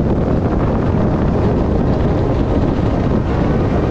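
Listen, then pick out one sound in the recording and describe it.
A helicopter's rotor thumps nearby.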